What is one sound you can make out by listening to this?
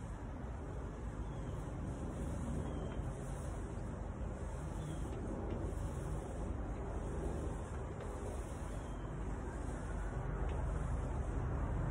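A paint spray gun hisses steadily.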